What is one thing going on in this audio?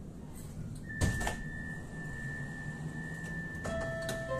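A tram chimes a high steady tone as it stops.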